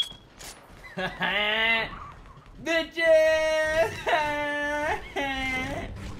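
A young man laughs and shouts excitedly close to a microphone.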